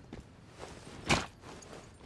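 A gunshot rings out.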